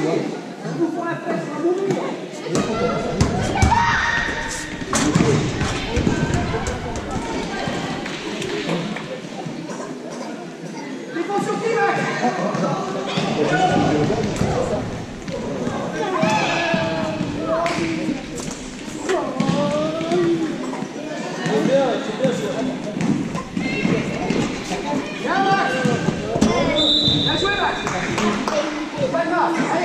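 A ball bounces on a hard floor.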